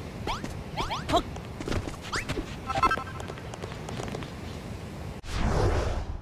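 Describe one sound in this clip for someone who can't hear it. Small footsteps patter quickly up stone steps.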